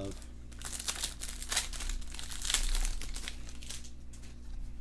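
A foil card wrapper crinkles and tears as it is ripped open.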